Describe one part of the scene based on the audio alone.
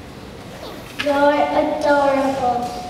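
A choir of young children sings together.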